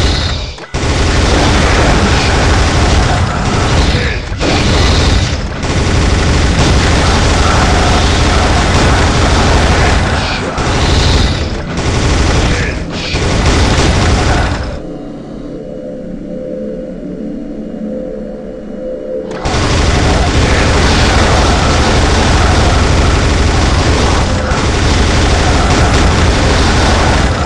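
A rotary machine gun fires in a rapid, continuous roar.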